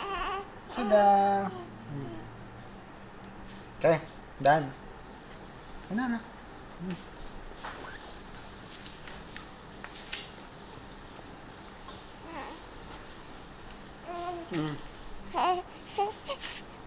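A baby coos and whimpers softly up close.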